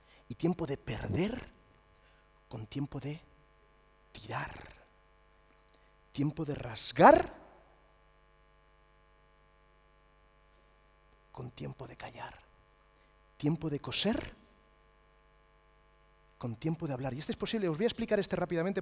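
A man speaks with animation through a microphone, in bursts with pauses.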